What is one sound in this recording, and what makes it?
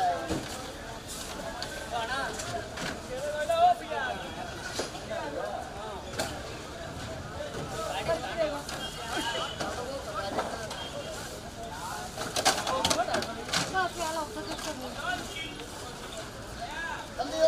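Plastic crates knock and clatter as they are stacked.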